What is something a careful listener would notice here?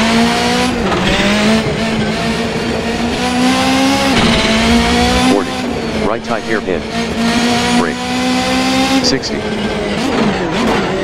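A rally car engine revs hard and shifts through the gears.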